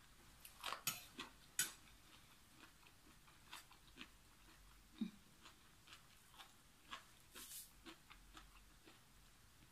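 A woman chews food noisily close by.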